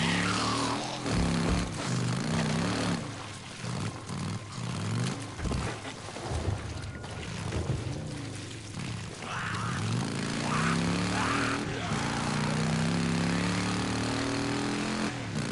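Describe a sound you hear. A motorcycle engine revs and roars, rising and falling in pitch.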